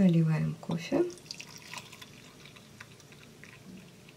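Coffee pours from a glass jug into a mug.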